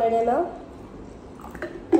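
A scoop of powder pours into a plastic shaker.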